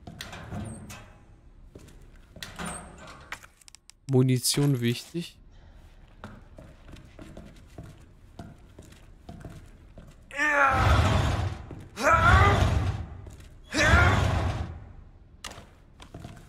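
A metal locker door creaks open with a clank.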